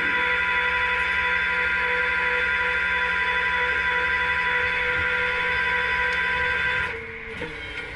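A winch motor whines steadily while pulling a car, then stops.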